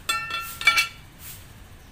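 A metal bearing shell clinks and rings briefly.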